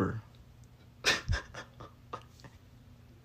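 A young man laughs briefly.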